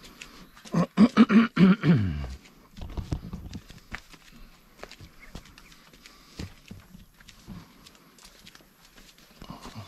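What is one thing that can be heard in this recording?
Footsteps pad on a concrete path.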